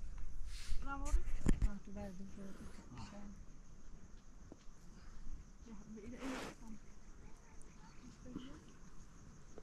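An elderly man talks calmly nearby outdoors.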